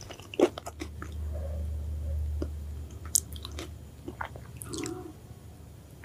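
Fingers squish food in a bowl of sauce.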